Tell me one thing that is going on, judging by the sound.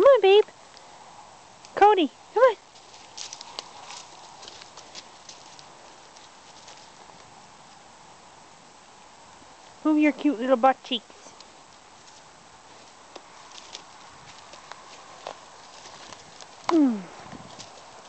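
Dry leaves rustle and crunch under a dog's paws.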